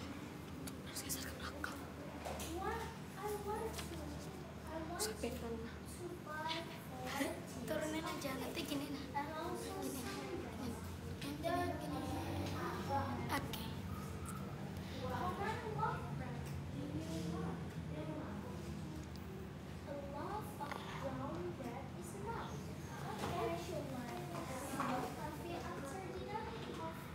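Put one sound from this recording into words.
A young woman reads aloud from a page close by.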